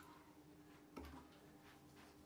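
A small metal bowl clinks against a hard counter.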